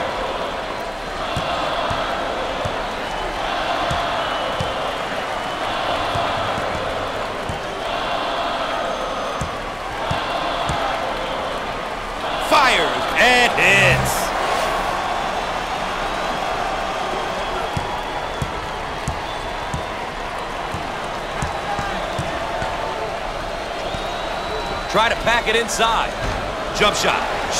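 A large crowd murmurs and cheers steadily in an echoing arena.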